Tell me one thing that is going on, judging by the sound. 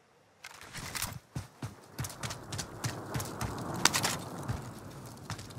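A rifle fires rapid shots in bursts.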